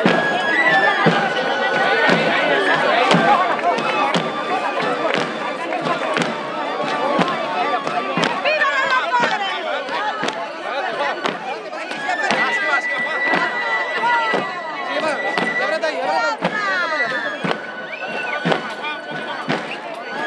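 Wooden sticks clack together in a steady rhythm outdoors.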